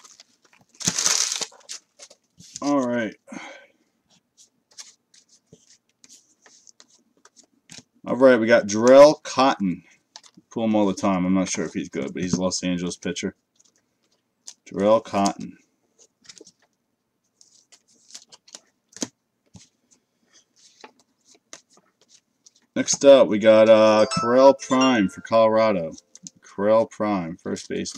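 Trading cards rustle and slide as hands sort through them.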